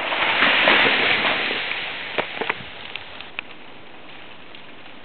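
Sleet hisses down steadily outdoors.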